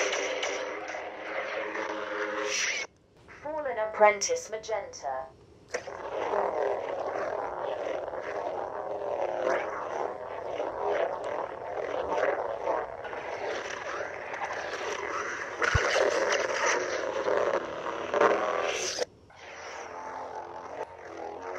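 A toy light sword hums and whooshes as it is swung.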